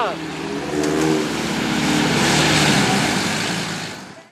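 Muddy water splashes under spinning tyres.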